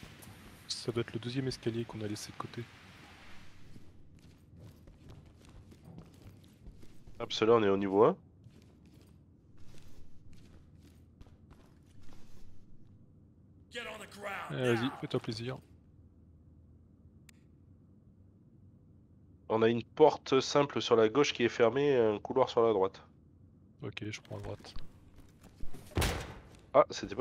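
Boots thud on hard stairs and floor.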